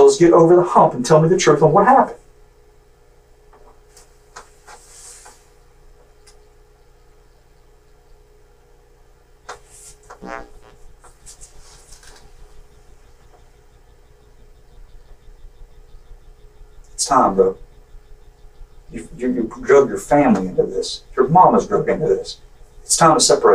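A man speaks calmly in a small room, heard from a ceiling microphone.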